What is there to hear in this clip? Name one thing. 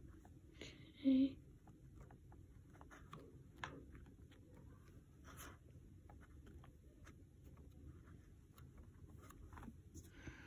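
A finger taps softly on a phone touchscreen.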